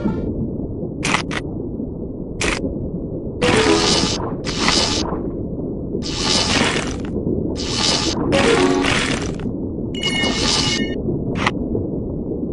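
Crunching bites sound in short bursts as a shark eats its prey.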